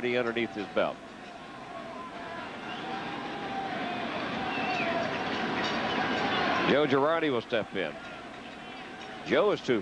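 A large stadium crowd murmurs and cheers, swelling slowly.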